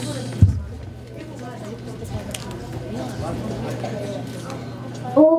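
A young boy speaks into a microphone through a loudspeaker.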